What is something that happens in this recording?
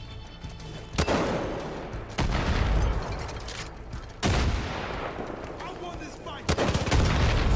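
A rocket launcher fires with a sharp blast.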